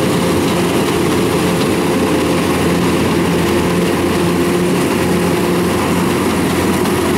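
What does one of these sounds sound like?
A combine harvester engine roars steadily close by.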